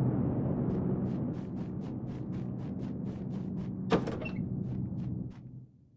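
Quick footsteps thud across a wooden floor.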